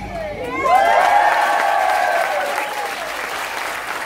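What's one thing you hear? A large choir sings a final chord together.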